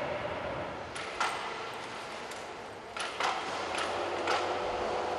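Metal wire clanks and rattles sharply in a large echoing hall.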